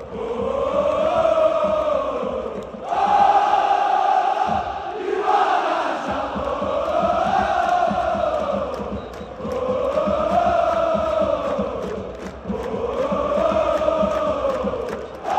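A crowd of fans claps in a steady rhythm.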